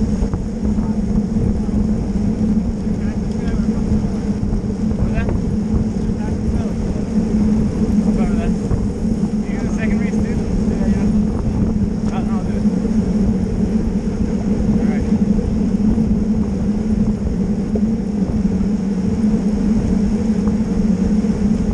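Bicycle tyres hum on smooth pavement.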